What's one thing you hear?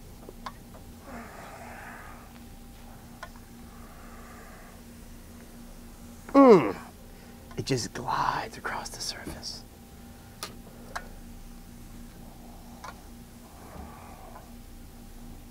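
A scraper rasps against a board in short strokes.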